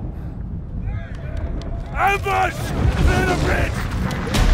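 A man shouts forcefully.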